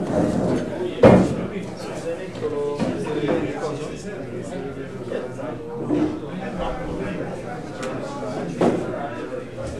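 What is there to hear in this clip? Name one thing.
Objects knock on a table.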